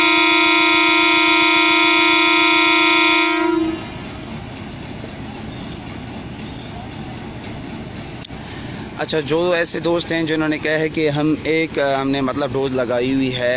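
A diesel locomotive engine idles nearby.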